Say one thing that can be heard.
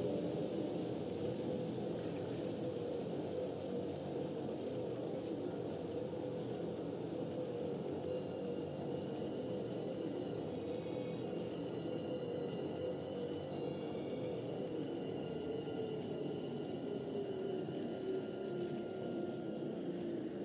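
A glowing energy blade hums steadily and low.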